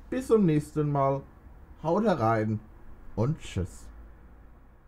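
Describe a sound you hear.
A young man speaks with animation into a microphone close by.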